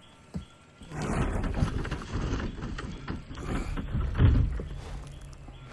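A heavy wooden crate scrapes and thuds as it is pushed.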